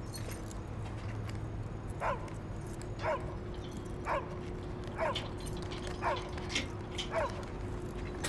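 A man rattles a lock on a metal door.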